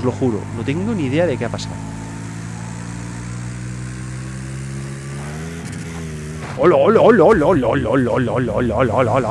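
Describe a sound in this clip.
A racing car engine drones steadily.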